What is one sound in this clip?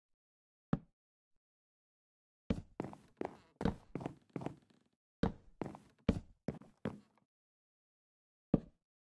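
Wooden blocks thud into place with short, dull knocks, in quick bursts.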